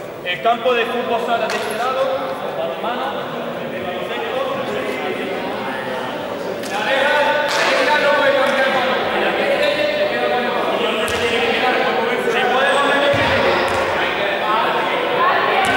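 Young men and women call out and chatter in a large echoing hall.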